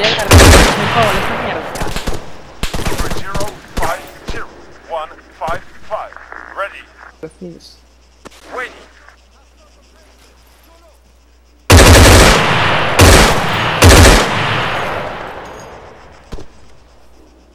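Loud rifle shots ring out and echo away across open ground.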